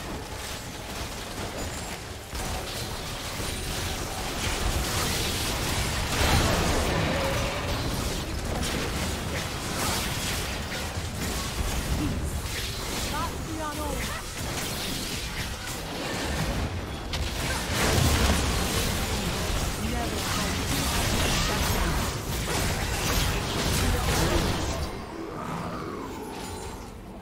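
Game spell effects crackle and boom in a busy battle.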